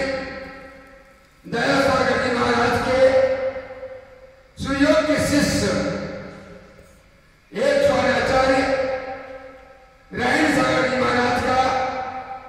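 An elderly man chants in long phrases through a microphone in an echoing hall.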